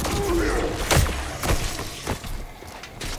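A rifle fires a few sharp shots.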